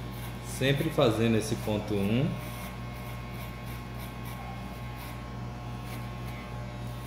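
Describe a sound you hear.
Electric hair clippers buzz steadily up close.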